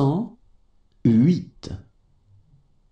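A man clearly reads out words through a microphone.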